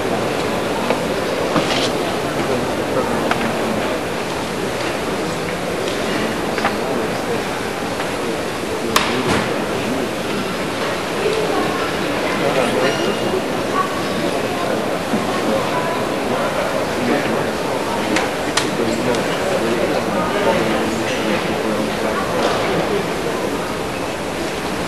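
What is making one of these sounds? Bare feet thump and slide on a wooden floor.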